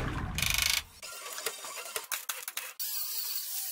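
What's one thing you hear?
An air nozzle hisses.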